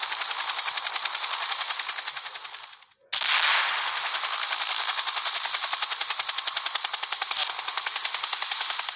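An automatic rifle fires rapidly and steadily, with one short pause.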